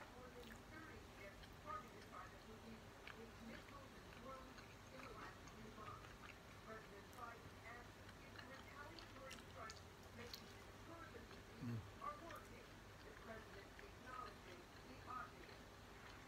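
A man chews food noisily, close by.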